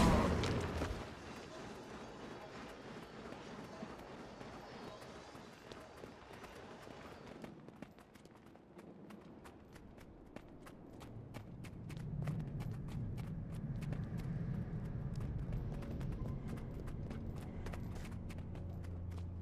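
Footsteps patter quickly on a stone floor.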